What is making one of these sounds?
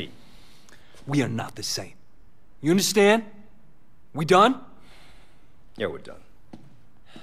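A second man speaks in a low, tough voice, close by.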